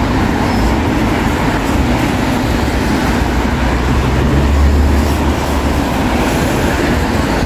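Car tyres hiss past on a wet road.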